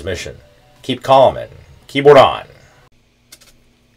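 A man talks with animation into a microphone, close by.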